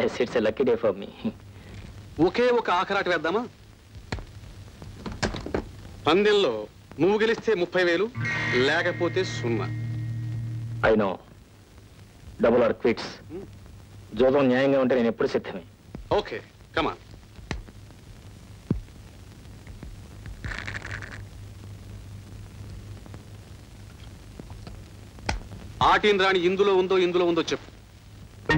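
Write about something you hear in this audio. A second man answers calmly, close by.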